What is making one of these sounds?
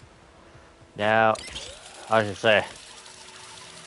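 A cable hums and rattles as a figure slides down a zip line.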